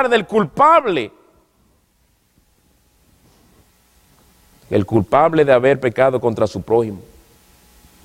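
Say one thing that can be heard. A man preaches through a microphone with emphatic pauses.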